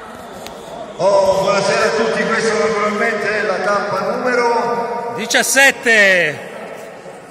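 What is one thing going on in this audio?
A man speaks with animation close by in an echoing hall.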